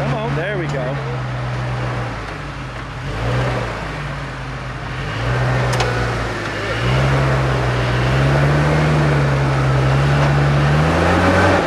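An engine rumbles and revs as an off-road truck crawls over rocks.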